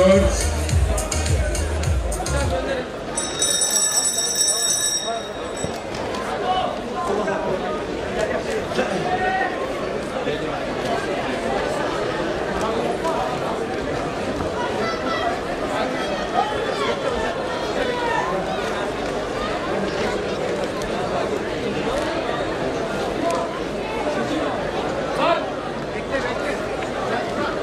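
A large crowd chatters and murmurs in an echoing hall.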